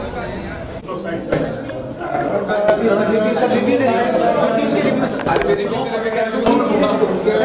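Several men talk and call out over one another close by.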